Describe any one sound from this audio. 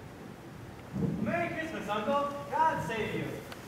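A man speaks with animation on a stage, a little distant.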